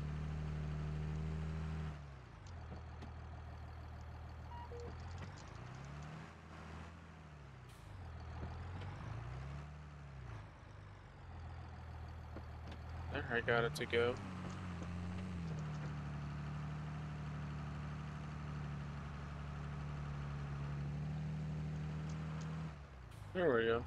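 A tractor engine rumbles steadily, its pitch rising and falling now and then.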